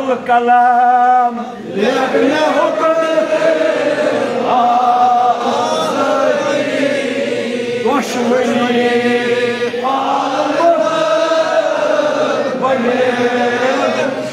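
A man chants and preaches with fervour through a microphone, echoing in a room.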